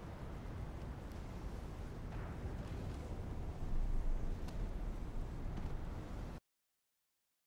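A hovering vehicle's engine hums low and steady.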